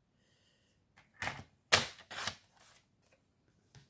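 A paper trimmer's blade slides along its rail.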